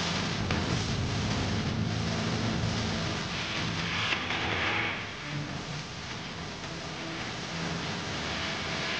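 Drums are beaten in a steady rhythm.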